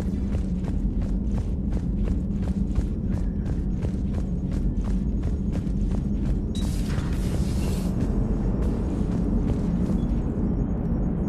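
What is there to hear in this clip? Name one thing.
Footsteps clang steadily on a metal floor.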